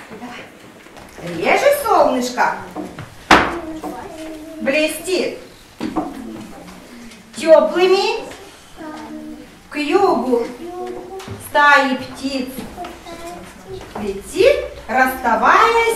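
A young boy recites loudly and clearly up close.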